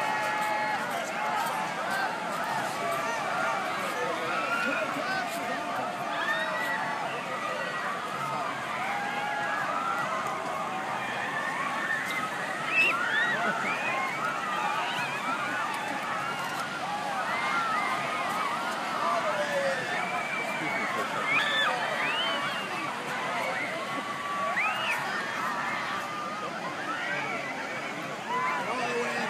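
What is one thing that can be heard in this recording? Waves break on the shore.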